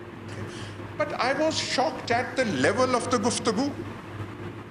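An elderly man speaks forcefully through a microphone.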